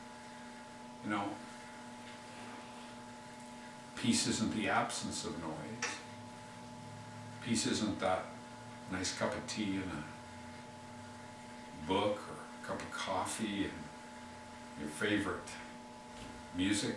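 An older man speaks calmly and close up, in short phrases with pauses.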